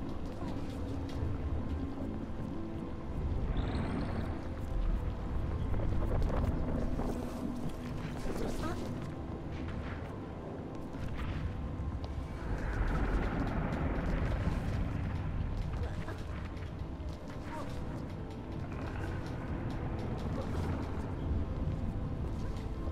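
Light footsteps patter quickly across hard platforms.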